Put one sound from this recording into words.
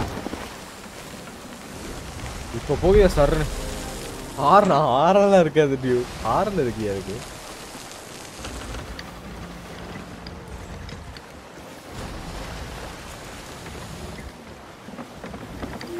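Ocean waves wash steadily around a sailing ship.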